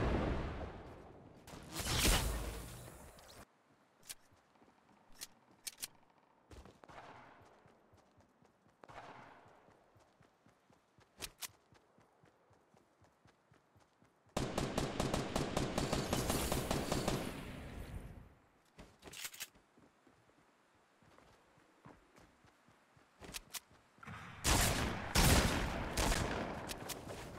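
Footsteps patter quickly across grass.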